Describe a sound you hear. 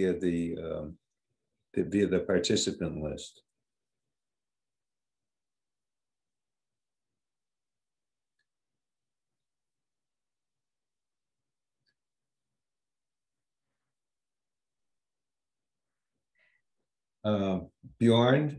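An elderly man speaks calmly over an online call, with long pauses.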